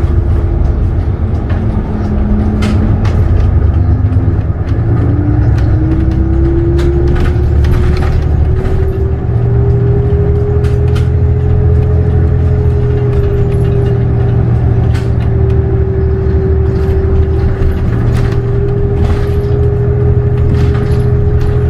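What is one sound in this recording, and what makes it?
The bus body rattles and clicks as it rolls over the road.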